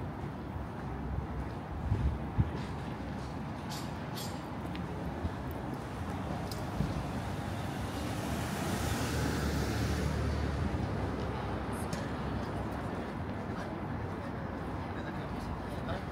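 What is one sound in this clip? A low hum of the city fills the air outdoors.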